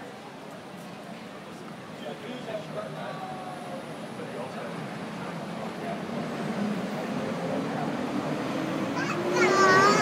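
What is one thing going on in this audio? People chat nearby in the street.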